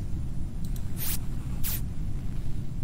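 Electronic switches click.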